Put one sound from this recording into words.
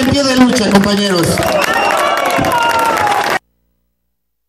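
A man speaks forcefully into a microphone.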